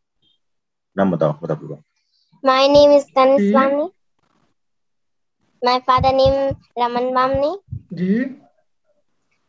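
A young girl speaks brightly over an online call.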